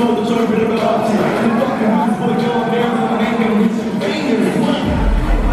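A young man raps loudly into a microphone over loudspeakers.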